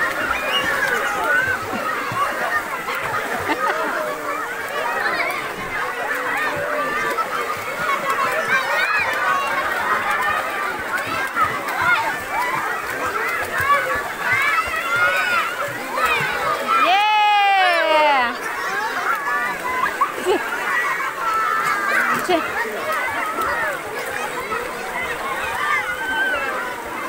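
Children shout and chatter excitedly outdoors.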